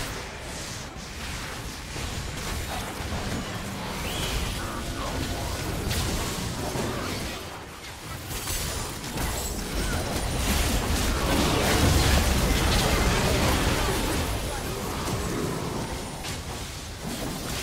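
Magic spell effects crackle and burst in a busy fight.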